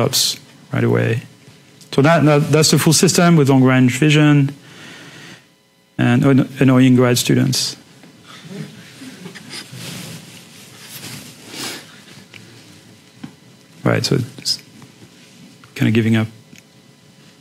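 A man speaks calmly into a microphone, as if giving a lecture.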